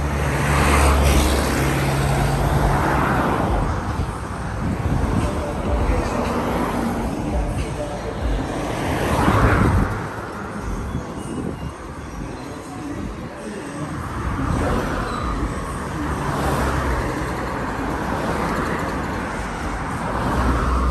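Cars rush past close by, one after another.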